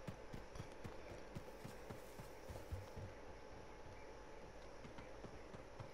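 Footsteps thud while running.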